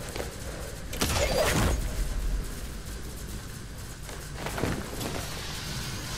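A grappling line shoots out with a loud whoosh.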